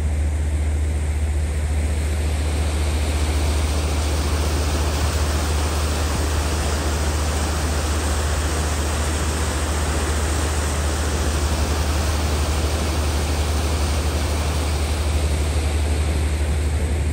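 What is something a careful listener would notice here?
A boat's engine hums low and steady.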